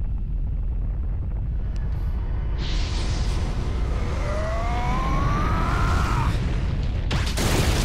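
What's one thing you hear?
Rock cracks and rumbles deeply.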